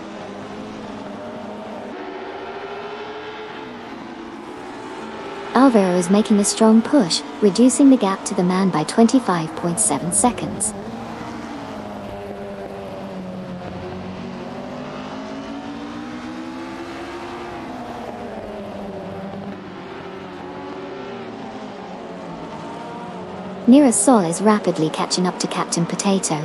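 Racing car engines whine and rise and fall in pitch as they speed by.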